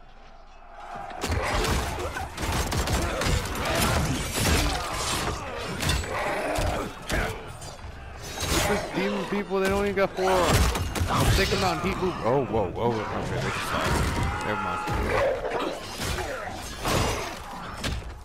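Heavy punches and blows thud in a fight.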